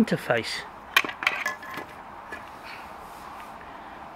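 Small plastic parts click and knock as they are handled.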